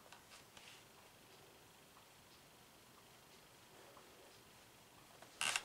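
A socked foot shifts softly on a floor.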